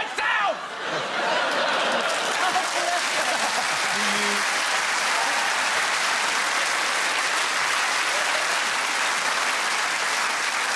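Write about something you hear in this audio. A large audience laughs and applauds loudly.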